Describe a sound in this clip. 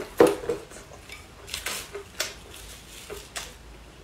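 Crisp lettuce crunches.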